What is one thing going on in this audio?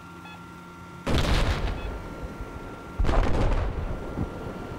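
Heavy explosions boom loudly, one after another.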